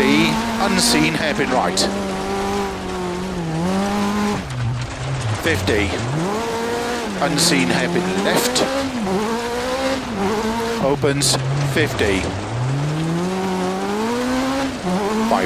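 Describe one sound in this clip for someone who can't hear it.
Gravel crunches and sprays under the tyres.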